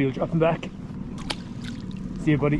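A fish splashes in the water close by.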